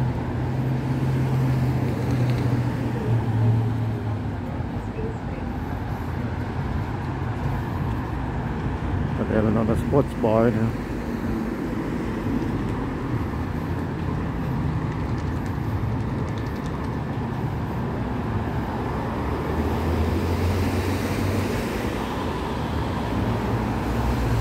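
Traffic rumbles steadily along a nearby city road.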